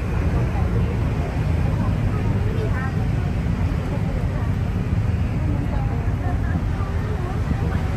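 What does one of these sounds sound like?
Traffic drones along a busy road nearby.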